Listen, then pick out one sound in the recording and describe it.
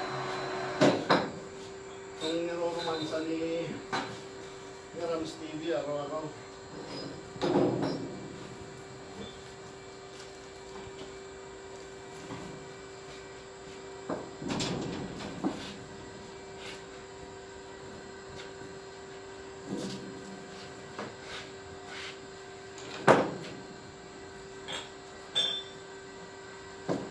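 Heavy rubber hoses thump and scrape as they are handled.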